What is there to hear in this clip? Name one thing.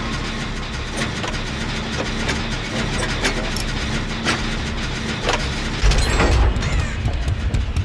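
A machine rattles and clanks as it is repaired.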